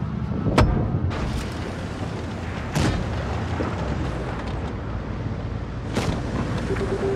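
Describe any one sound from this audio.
Tank cannons fire with loud booms.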